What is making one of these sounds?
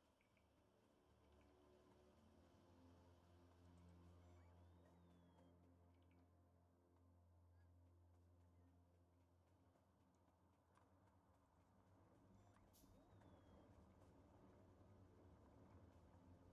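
Machines hum steadily in a low drone.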